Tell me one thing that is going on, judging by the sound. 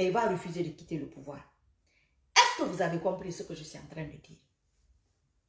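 A young woman speaks with animation close to a microphone.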